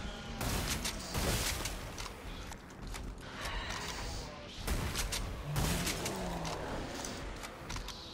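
A blade slashes and hacks wetly through flesh.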